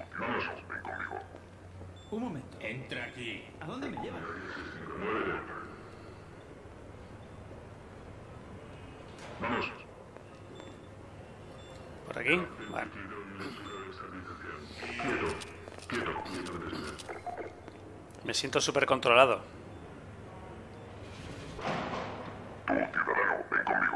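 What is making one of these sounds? A game character speaks through a distorted radio voice.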